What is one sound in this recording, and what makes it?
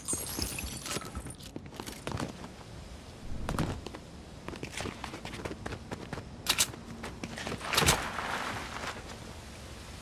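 Game sounds click and thump sharply.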